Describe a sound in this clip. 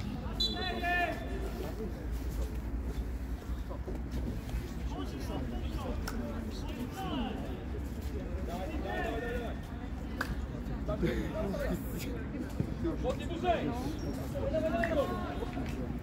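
Young men shout and call to each other at a distance outdoors.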